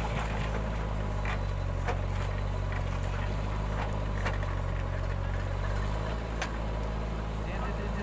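A digger bucket scrapes into the earth.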